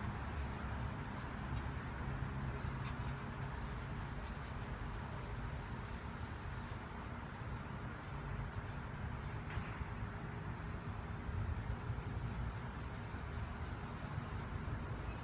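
A dog's paws pad softly across grass and sand.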